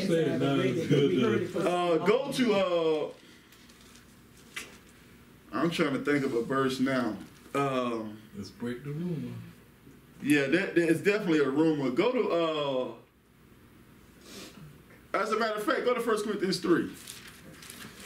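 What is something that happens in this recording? A man speaks calmly and closely, pausing between phrases.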